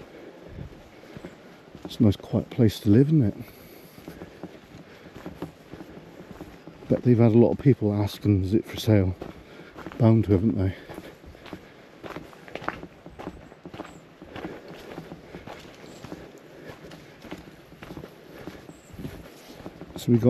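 Footsteps crunch on a dirt path outdoors.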